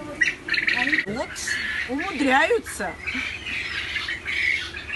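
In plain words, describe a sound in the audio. Young chicks peep in high, rising and falling cheeps.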